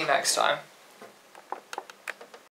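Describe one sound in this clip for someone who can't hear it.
A guitar bumps and knocks as it is handled.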